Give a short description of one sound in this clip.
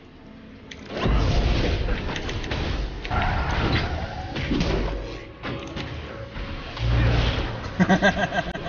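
Video game spells crackle and blast during a fight.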